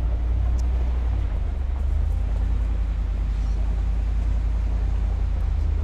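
Tyres crunch over a dirt track.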